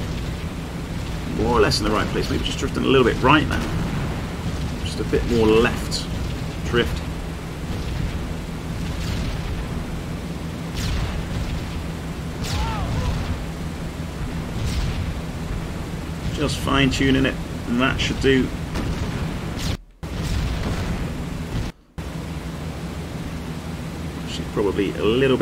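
Aircraft engines drone steadily.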